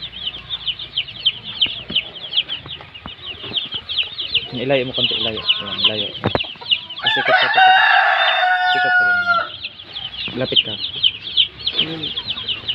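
Chicks cheep rapidly and steadily close by.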